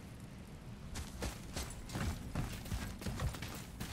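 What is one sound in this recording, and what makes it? Heavy footsteps crunch on sand and wooden planks.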